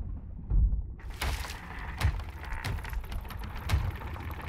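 Water splashes and sloshes loudly.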